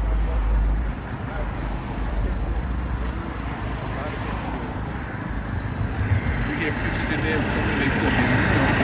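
An older man speaks calmly into a clip-on microphone, close by.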